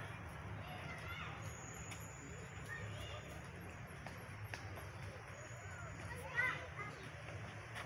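A young child calls out briefly nearby, a few times.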